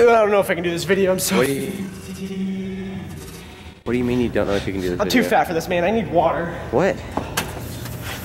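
A young man talks close by.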